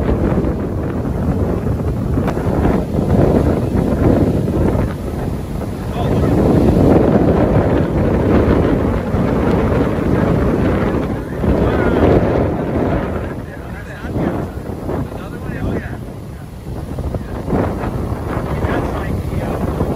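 Waves crash and roar onto the shore.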